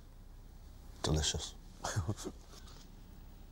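A middle-aged man speaks calmly and slowly, close by.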